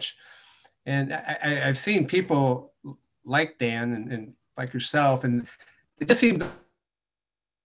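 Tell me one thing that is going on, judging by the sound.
A middle-aged man speaks calmly into a microphone, heard as if over an online call.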